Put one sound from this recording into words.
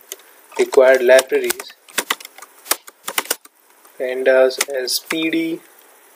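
Keys click on a computer keyboard as someone types.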